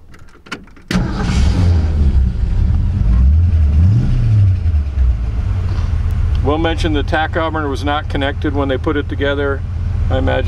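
A car engine starts and idles with a low rumble.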